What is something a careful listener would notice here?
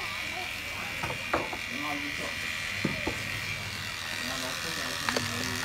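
Electric hair clippers buzz.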